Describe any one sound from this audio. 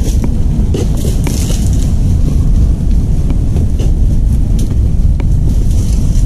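Footsteps crunch on dry palm fronds.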